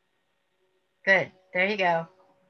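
An elderly woman speaks briefly over an online call.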